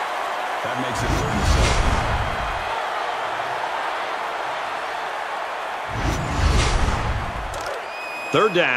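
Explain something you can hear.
A deep whoosh sweeps past.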